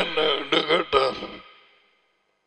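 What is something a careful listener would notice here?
An older man speaks calmly into a close headset microphone.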